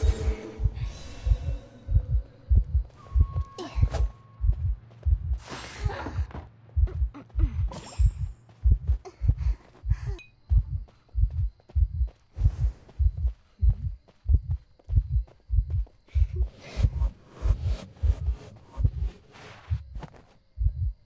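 Footsteps thud steadily as a figure runs.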